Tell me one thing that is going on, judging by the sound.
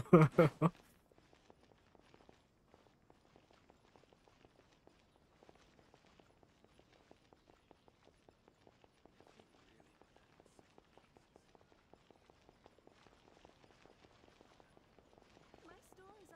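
Light footsteps tap steadily on stone.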